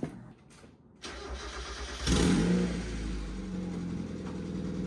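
A car engine starts, revs and then idles steadily.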